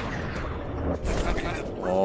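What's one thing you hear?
An explosion bursts with a deep rumble.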